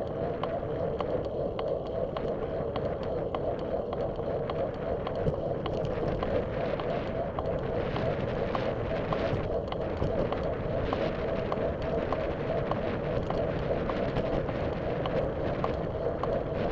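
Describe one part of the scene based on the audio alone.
Tyres hum on a paved path.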